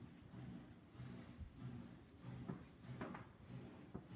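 A small plastic part clicks softly as it is handled.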